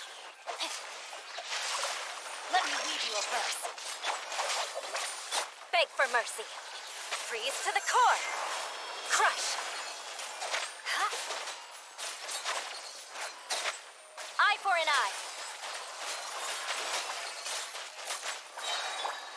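Magical blasts and sword strikes crackle and boom in quick succession.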